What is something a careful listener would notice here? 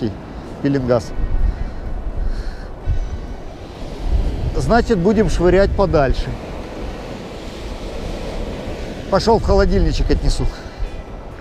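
Waves wash gently onto the shore.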